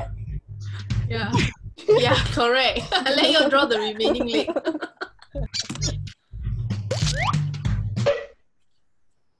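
Young women talk excitedly over an online call.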